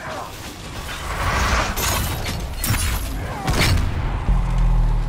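Magic spells crackle and burst with loud whooshing blasts.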